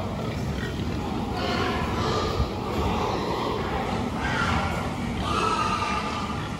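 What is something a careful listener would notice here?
Pigs' hooves shuffle and scrape on a hard floor.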